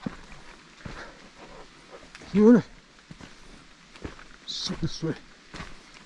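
Footsteps thud on wooden steps.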